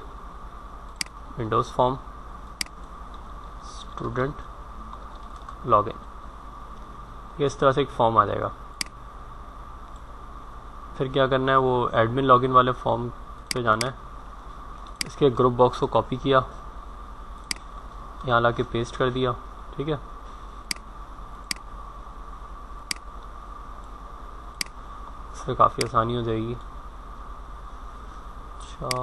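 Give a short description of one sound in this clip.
A computer mouse clicks now and then.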